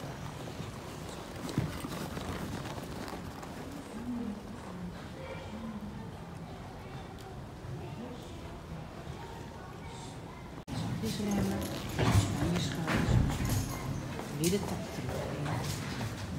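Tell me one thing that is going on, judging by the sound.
Horse hooves thud softly on sand.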